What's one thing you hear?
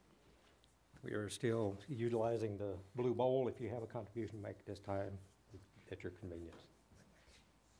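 An elderly man speaks calmly through a microphone in a reverberant hall.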